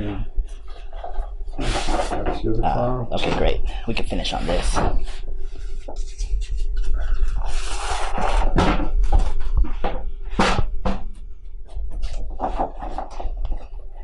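Large sheets of paper rustle and flap as they are leafed through.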